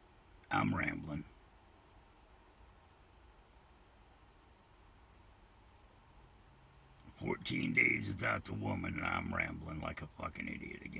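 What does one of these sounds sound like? An elderly man speaks close by in a low voice.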